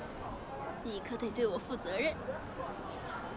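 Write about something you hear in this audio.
A young woman speaks playfully and teasingly nearby.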